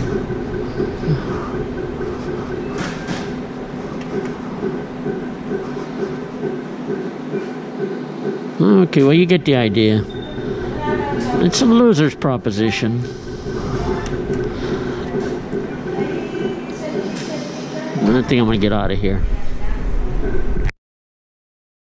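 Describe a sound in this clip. A gaming machine plays a looping electronic jingle.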